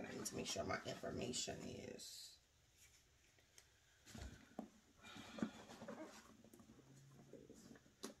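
A leather handbag rustles and creaks as hands move it about.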